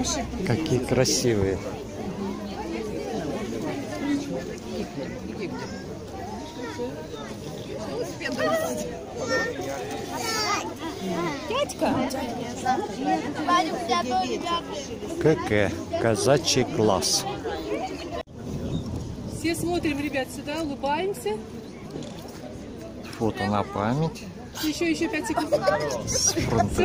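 A crowd of adults and children chatter outdoors.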